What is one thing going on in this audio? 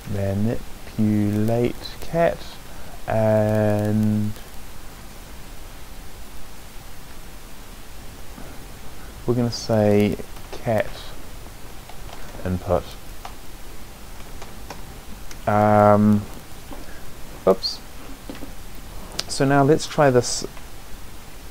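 A man speaks in short phrases close to a microphone, with long pauses between.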